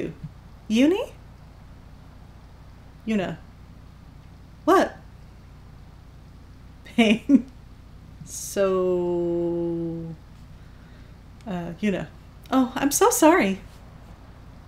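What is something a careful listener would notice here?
A woman speaks in short bursts close to a microphone.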